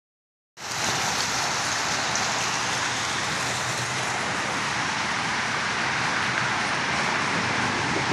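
Water splashes steadily down a small waterfall nearby.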